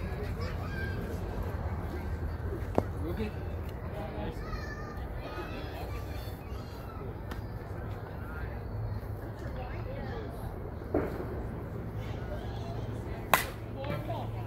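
Players call out and chatter at a distance across an open field.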